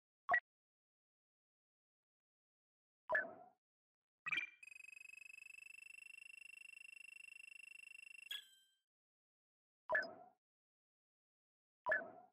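A menu clicks with soft whooshing tones.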